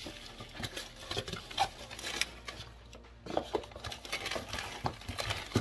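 Paper and packaging rustle.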